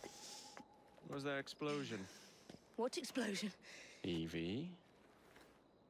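A young man speaks tensely.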